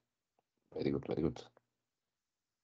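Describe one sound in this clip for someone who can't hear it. A man speaks briefly and calmly through an online call.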